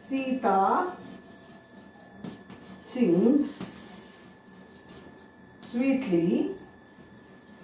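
A middle-aged woman speaks slowly and clearly, in short phrases, close by.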